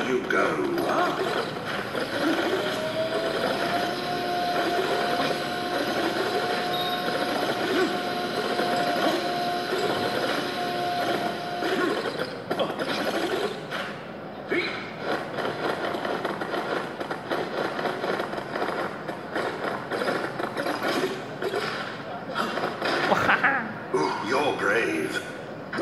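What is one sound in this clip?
Game sound effects chime and jingle as coins are collected.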